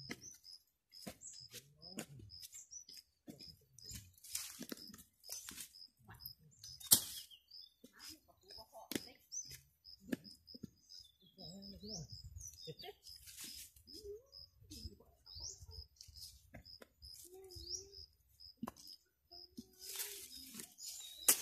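A digging bar thuds and scrapes into dry soil.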